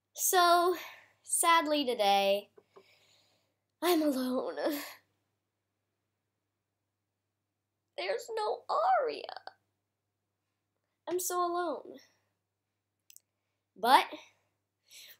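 A young girl talks close by, with animation, in short bursts with pauses.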